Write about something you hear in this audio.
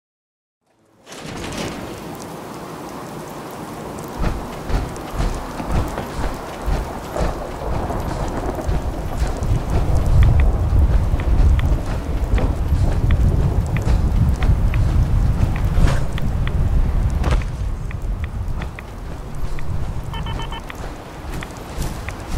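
Heavy metal footsteps clomp steadily over the ground.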